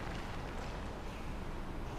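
A magic portal hums with a low, steady drone.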